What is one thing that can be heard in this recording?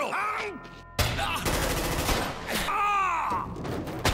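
A pistol fires a rapid burst of loud shots.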